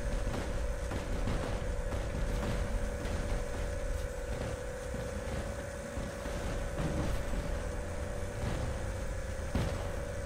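Energy weapons fire in sharp, repeated blasts.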